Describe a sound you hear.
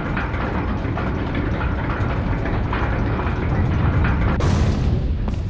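Large metal gears grind and rumble as they turn.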